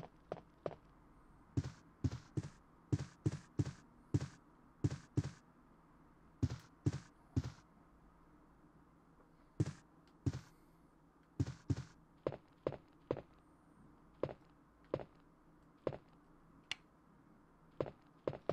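Footsteps tap steadily across a hard floor.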